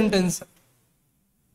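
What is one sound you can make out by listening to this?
A man speaks briefly and calmly into a close microphone.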